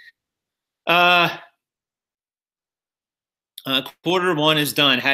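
A man speaks into a microphone close by, with pauses.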